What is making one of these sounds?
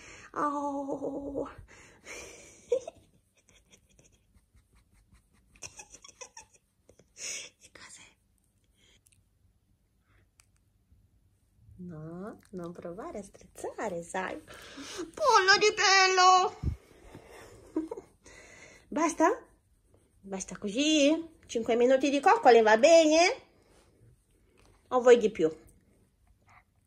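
A small dog whines and grumbles in bursts, close by.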